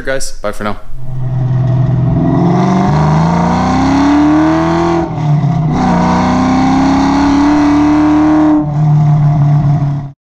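A car engine revs and roars as the car speeds along a road.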